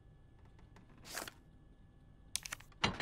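Short menu blips and clicks sound as an item is chosen and stored.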